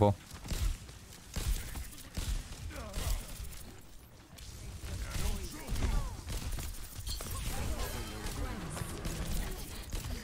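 Gunfire from a game weapon rattles in quick bursts.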